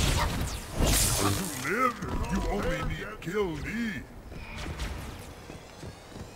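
An energy sword swings and slashes with a sharp hum.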